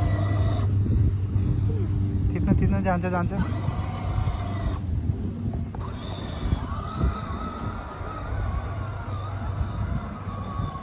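A toy car's electric motor whirs steadily.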